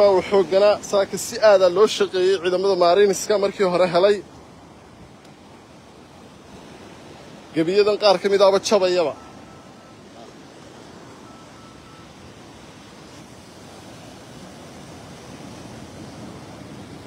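Sea waves wash against a rocky shore.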